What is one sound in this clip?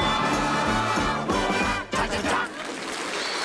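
A group of voices sings loudly.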